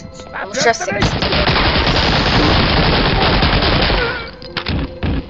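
A submachine gun fires a long, loud burst indoors.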